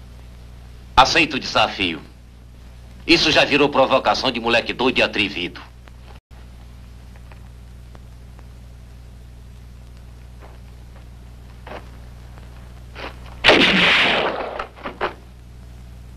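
A man speaks forcefully and clearly.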